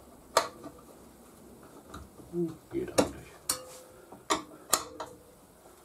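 Metal tyre levers click and clank against a wheel rim.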